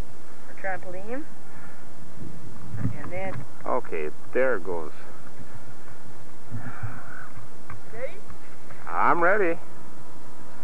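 A child shouts and squeals some distance away.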